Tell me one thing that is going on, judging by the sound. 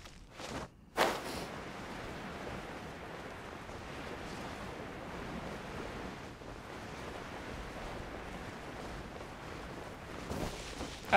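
Wind rushes steadily past.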